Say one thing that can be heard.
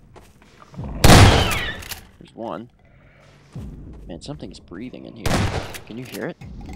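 A shotgun fires loud blasts that echo in a large room.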